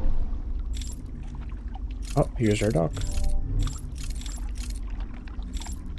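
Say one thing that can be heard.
Water laps gently against a small wooden boat.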